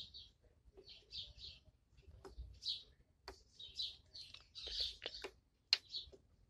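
A small plastic figure scrapes and taps against a metal rail.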